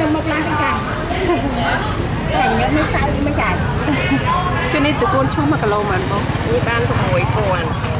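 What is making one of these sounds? A knife scrapes along vegetable stems.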